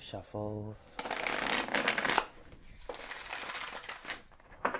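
A cardboard box rustles as it is opened.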